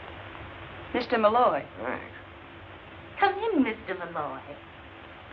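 A young woman speaks clearly and with feeling.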